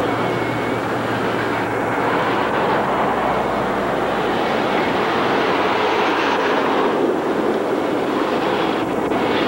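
Wind blows steadily and roughly across the microphone outdoors.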